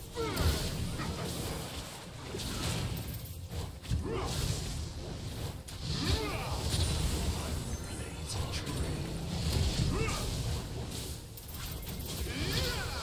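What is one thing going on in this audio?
Video game spell effects whoosh and crash in quick bursts.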